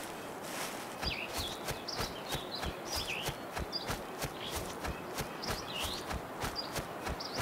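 Footsteps rustle through dry grass and leaves.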